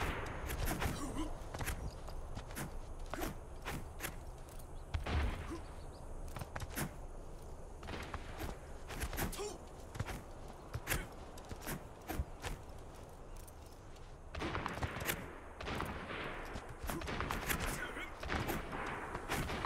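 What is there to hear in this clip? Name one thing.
A game character's blade swishes and clicks in short bursts.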